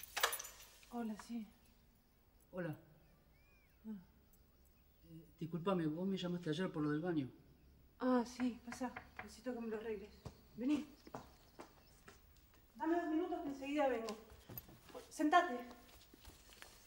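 A young woman talks nearby.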